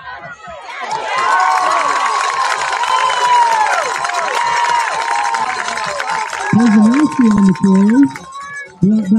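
A crowd cheers and shouts loudly in the stands.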